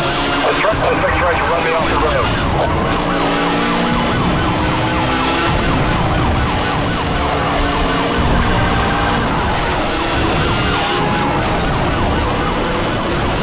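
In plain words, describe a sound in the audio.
Police sirens wail close by.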